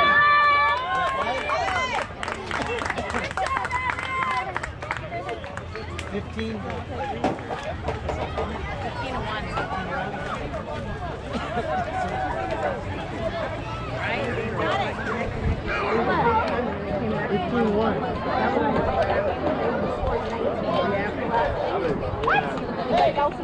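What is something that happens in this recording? Young players shout and cheer across an open field outdoors.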